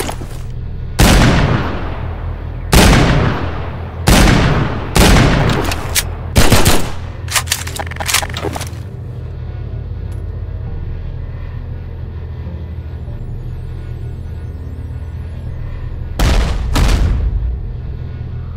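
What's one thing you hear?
Gunshots bang loudly, one after another, each ringing out briefly.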